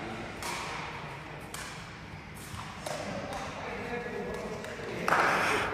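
A sepak takraw ball is kicked back and forth in a large echoing hall.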